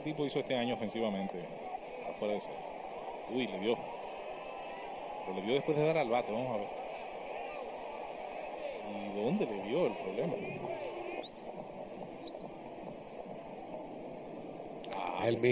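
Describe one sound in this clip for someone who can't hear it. A large crowd murmurs throughout a stadium.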